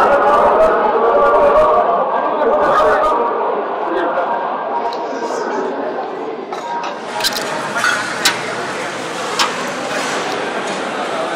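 A crowd of people murmurs and chatters.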